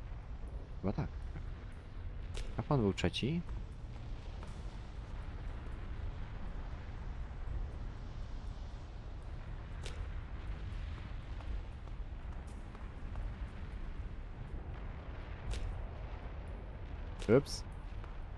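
A young man speaks briefly into a microphone, in short bursts.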